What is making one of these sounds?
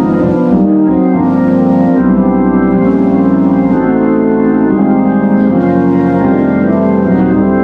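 An electric organ plays sustained chords with a rich, warbling tone.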